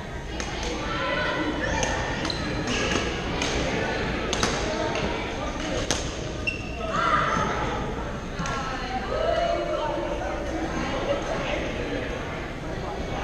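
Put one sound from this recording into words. Many people talk and call out in a large echoing hall.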